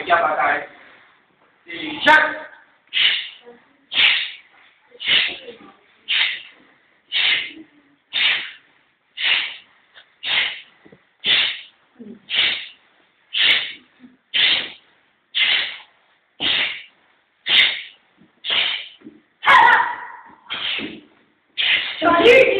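A group of young children shout together in a steady rhythm, about once a second, in an echoing room.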